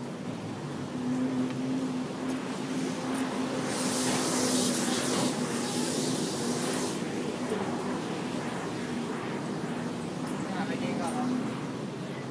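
A bus engine hums as it idles.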